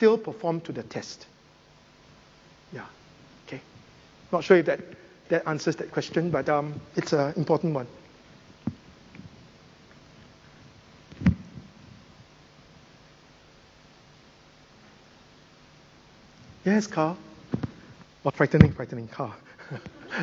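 A man speaks calmly through a microphone, with long pauses between phrases.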